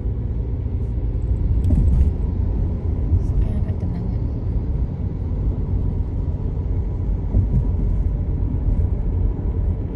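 Motorbike engines hum nearby on the road.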